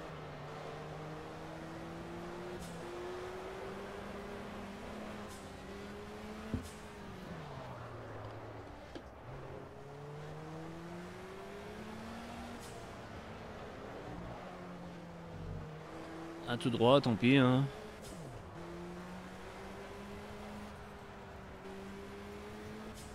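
A racing car engine roars, rising and falling in pitch as it revs and shifts gears.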